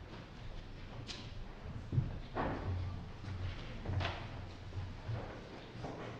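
A congregation of adults murmurs quietly in a large echoing hall.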